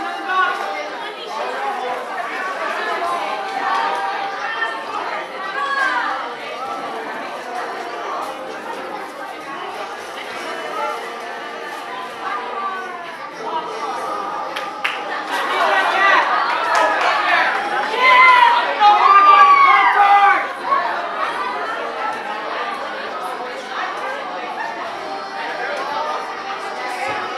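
Young girls chatter and call out nearby.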